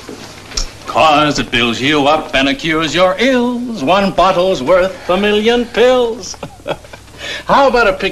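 A man speaks cheerfully nearby.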